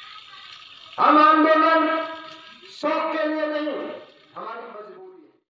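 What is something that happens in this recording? A man sings loudly into a microphone in long, drawn-out phrases.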